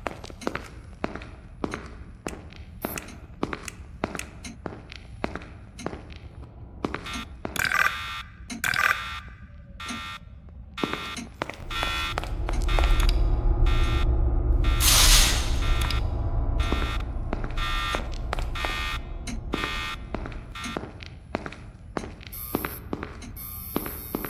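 Footsteps tap across a tiled floor.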